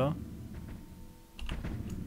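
A large beast growls.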